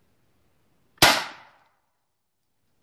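A gunshot cracks loudly nearby and echoes briefly through the woods.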